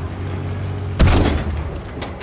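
A tank cannon fires with a loud, sudden boom.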